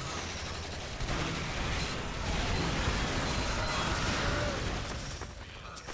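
A flamethrower roars with a rushing hiss.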